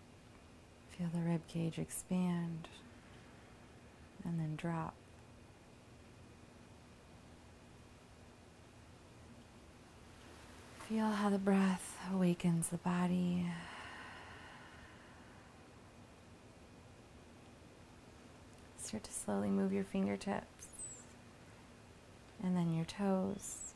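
A young woman speaks calmly and closely, in short phrases with pauses.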